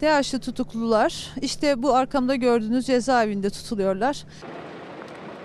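A woman speaks calmly and clearly into a microphone close by.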